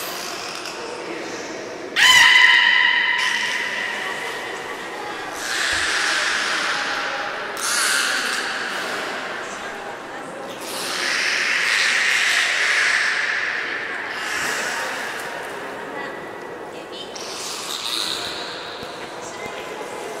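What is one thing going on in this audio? Water swirls and splashes softly as a whale swims through a pool.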